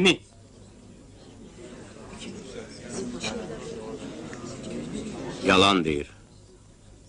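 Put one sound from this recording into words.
A crowd murmurs in the distance.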